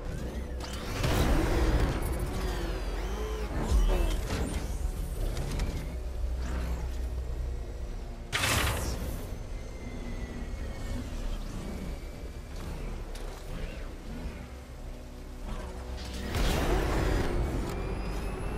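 Short bursts of rushing noise boost the vehicle forward.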